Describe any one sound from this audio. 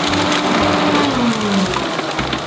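A diesel engine's pitch drops as it slows.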